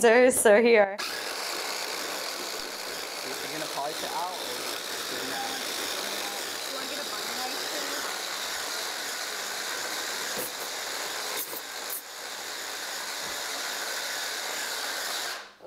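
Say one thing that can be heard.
A hand blender whirs steadily.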